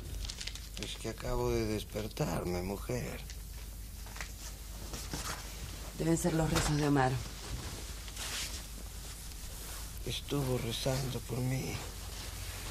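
A middle-aged man speaks in a low, relaxed voice.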